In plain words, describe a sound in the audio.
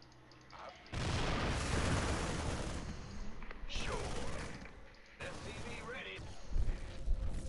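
Weapons fire and blasts crackle in a short battle.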